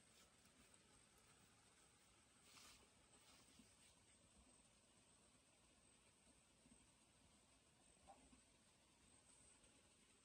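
Fingers rustle through grass close by.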